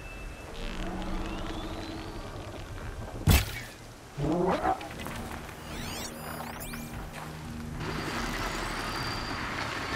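A bowstring creaks as a bow is drawn.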